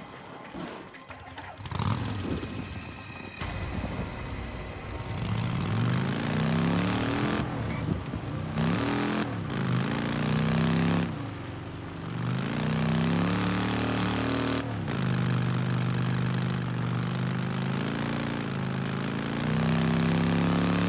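A motorcycle engine roars, revving up and down as it speeds along.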